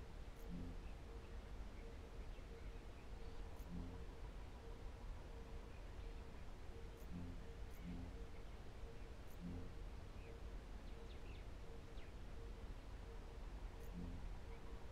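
Short soft menu clicks sound now and then as selections change.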